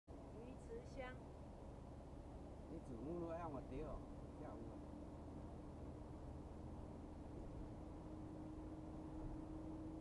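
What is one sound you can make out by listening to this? A car engine hums steadily with road rumble from inside the cabin.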